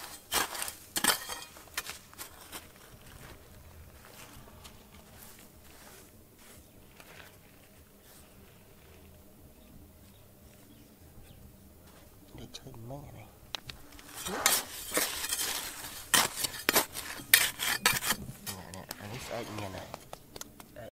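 A small trowel scrapes and digs into loose gravel.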